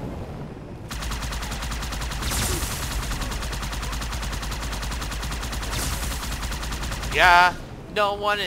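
Rapid weapon fire chatters in a fast stream.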